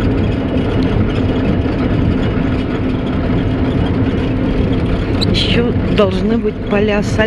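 A vehicle drives steadily along a road.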